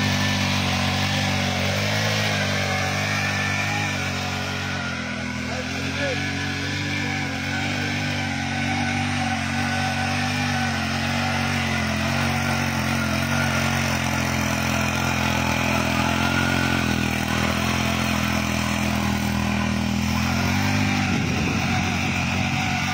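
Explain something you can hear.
A small petrol engine drones steadily close by.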